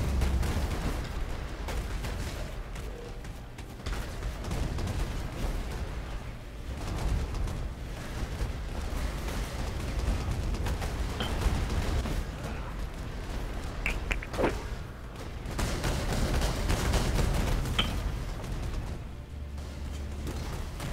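Magic spells whoosh and crackle in rapid bursts.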